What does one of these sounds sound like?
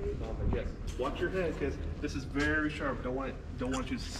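A man talks nearby in a large echoing hall.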